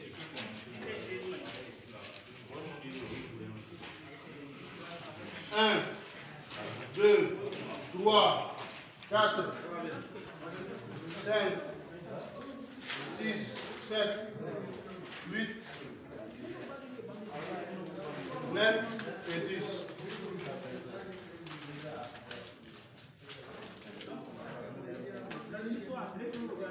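Several men and women talk loudly nearby.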